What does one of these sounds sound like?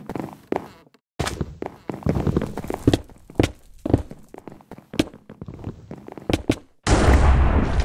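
Sword blows land in quick, sharp hits.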